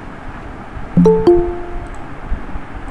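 A short descending electronic chime sounds.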